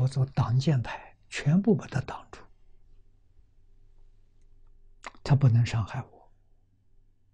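An elderly man speaks calmly and expressively into a close microphone, pausing between phrases.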